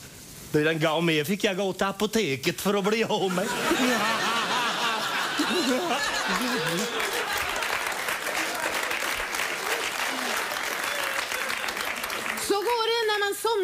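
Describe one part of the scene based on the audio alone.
A middle-aged man sings out loudly in a full, theatrical voice.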